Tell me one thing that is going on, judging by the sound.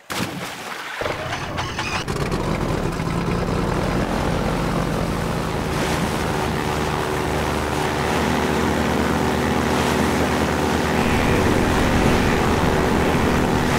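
Water rushes and splashes under a fast boat.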